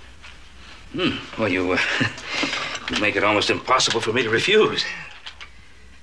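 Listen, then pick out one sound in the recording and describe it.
An elderly man speaks in a deep, gruff voice.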